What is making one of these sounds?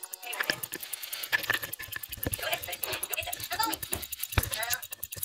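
A mechanical watch ticks rapidly and steadily, close up.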